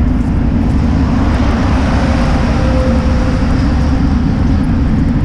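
A truck passes close by and fades.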